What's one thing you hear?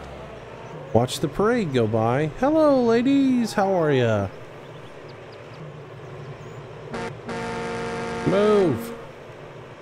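Cows moo loudly nearby.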